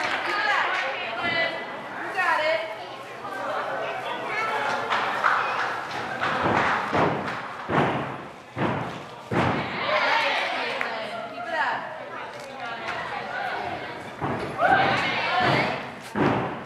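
Teenage girls chatter and cheer in a large echoing hall.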